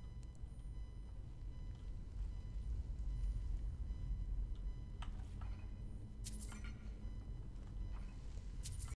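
A magic flame hums and crackles softly.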